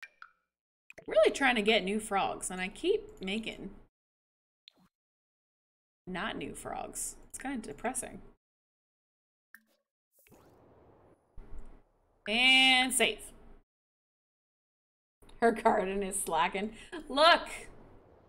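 A young woman talks with animation through a headset microphone.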